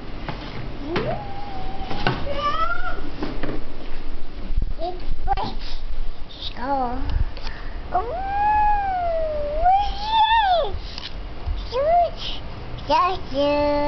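A toddler babbles and squeals up close.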